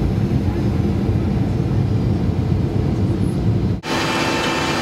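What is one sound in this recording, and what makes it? A jet airliner's engines roar loudly inside the cabin as the plane rolls down the runway.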